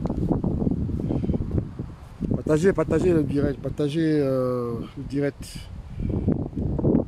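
Wind rumbles outdoors against the microphone.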